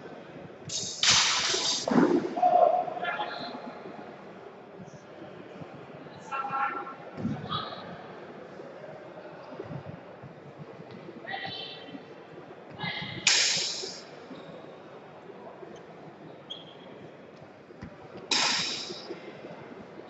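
Weapons clash and strike sharply in a large echoing hall.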